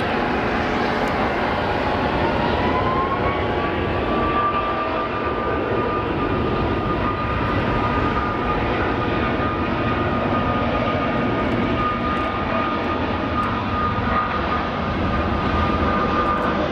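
A jet engine's high whine rises and then holds steady.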